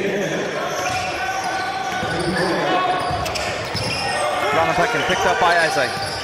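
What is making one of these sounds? A basketball bounces on the court as a player dribbles.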